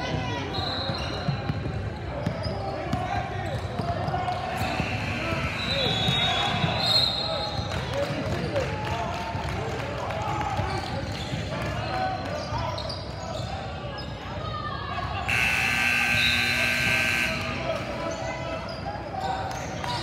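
Sneakers squeak on a wooden court in a large echoing gym.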